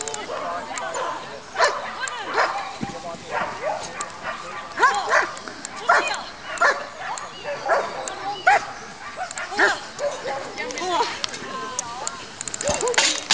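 A woman shouts short, sharp commands outdoors.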